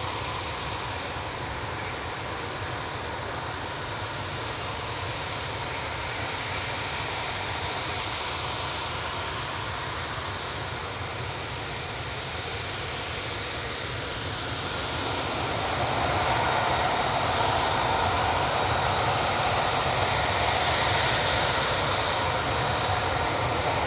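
Jet engines roar and whine steadily, growing louder partway through.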